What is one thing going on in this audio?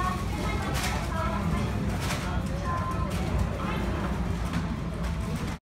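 Men and women chat quietly in the background of a busy room.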